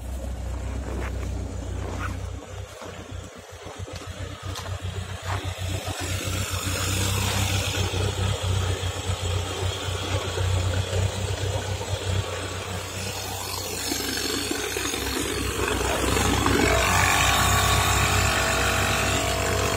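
A car engine idles.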